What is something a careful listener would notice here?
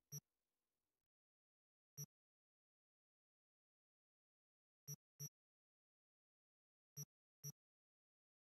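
Short soft menu clicks tick now and then.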